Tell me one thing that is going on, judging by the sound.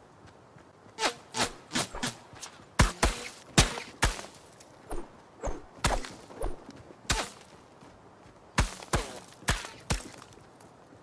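Video game gunshots fire in quick bursts.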